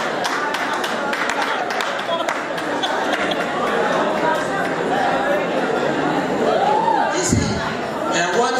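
A crowd claps steadily in a room.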